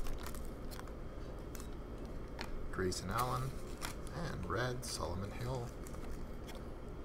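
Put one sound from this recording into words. Trading cards rustle and click as they are handled up close.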